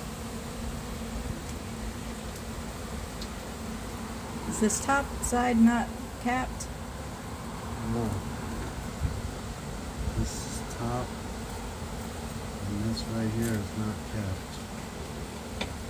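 Bees buzz steadily close by.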